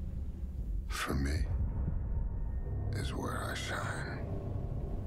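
A man speaks slowly in a low, deep voice.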